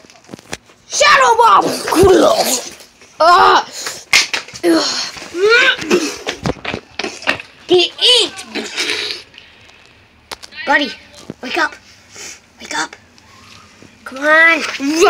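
A young child talks excitedly and playfully close by.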